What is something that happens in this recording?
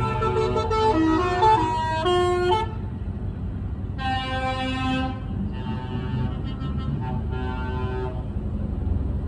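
Truck air horns blare in several loud, sustained blasts.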